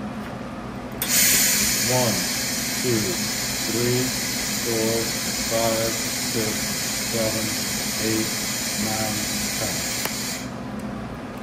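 A welding torch hisses and roars steadily, then cuts off.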